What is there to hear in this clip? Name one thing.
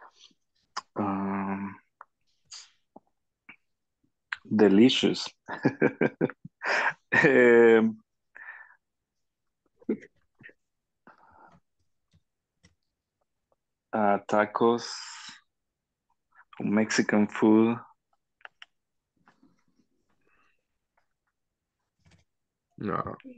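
A young man speaks calmly and close by, in short bursts with long pauses.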